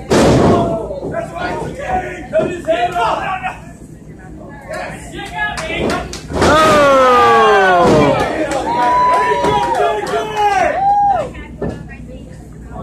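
A crowd of spectators shouts and cheers loudly nearby in an echoing hall.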